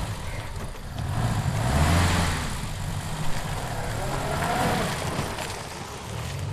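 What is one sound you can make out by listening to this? A car engine rumbles as a car pulls away and drives off.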